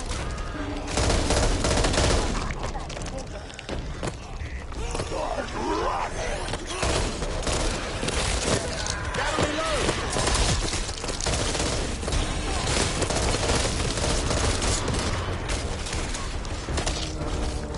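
A rifle fires loud shots in bursts.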